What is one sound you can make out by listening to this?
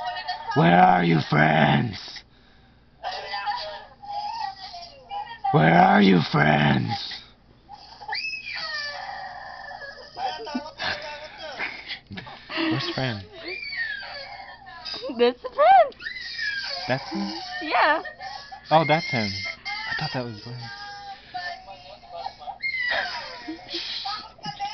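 A woman laughs and talks with animation.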